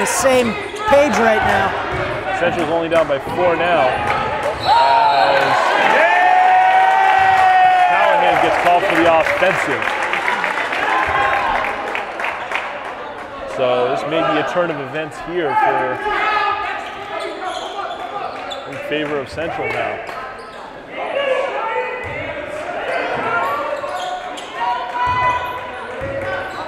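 Spectators shout and cheer in an echoing gym.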